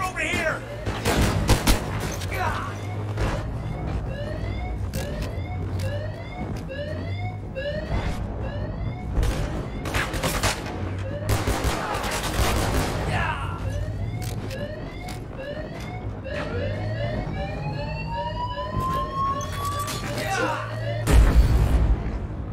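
Pistol shots crack sharply and echo.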